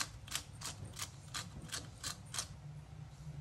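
A pepper grinder grinds with quick clicking.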